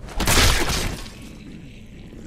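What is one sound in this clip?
A heavy blow lands with a loud crash.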